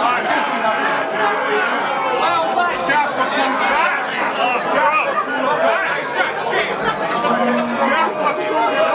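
A man raps loudly and rhythmically into a microphone.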